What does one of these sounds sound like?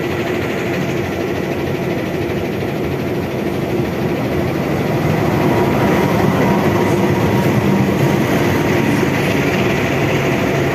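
A diesel locomotive rumbles loudly, drawing closer.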